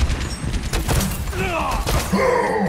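A grenade launcher fires with a loud thump.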